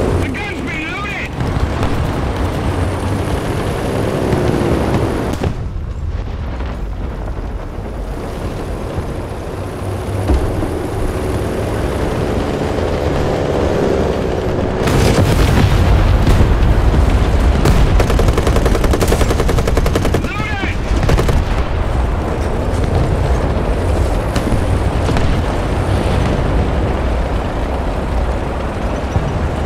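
Tank tracks clank and squeak over the ground.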